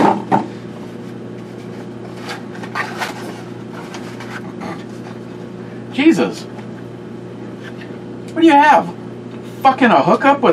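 A cardboard box rustles and crinkles as it is opened.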